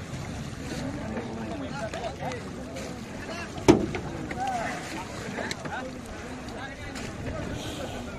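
Water splashes as a man swims beside buffalo.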